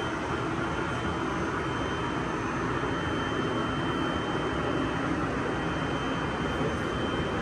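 A treadmill motor hums steadily.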